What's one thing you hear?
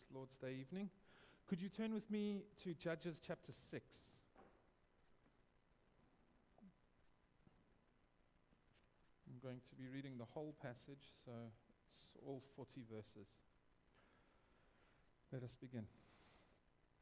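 A man speaks calmly into a microphone in an echoing room, pausing between phrases.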